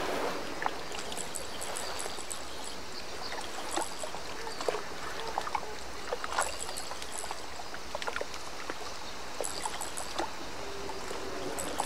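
A fishing reel clicks softly as line is wound in.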